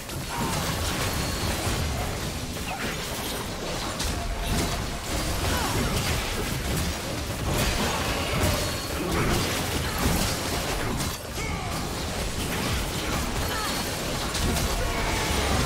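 Spell effects crackle and burst as game characters fight.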